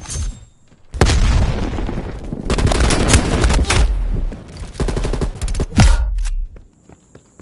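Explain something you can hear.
Rifle shots bang in rapid bursts.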